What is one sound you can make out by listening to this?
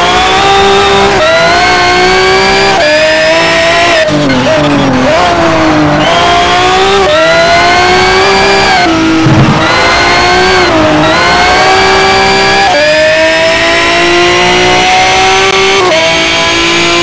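A race car engine roars loudly, its pitch climbing through each gear and dropping sharply at every gear change.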